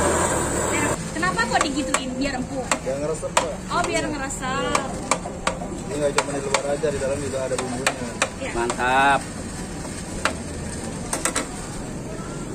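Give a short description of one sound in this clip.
A metal spatula clicks and scrapes against a hot griddle.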